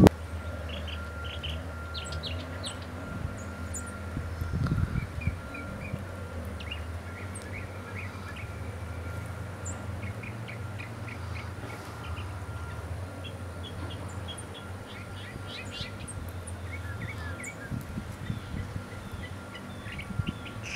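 A bird chirps in short, sharp bursts outdoors.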